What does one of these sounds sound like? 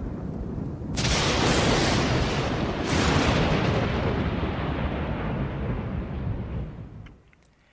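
Thunder cracks and rumbles.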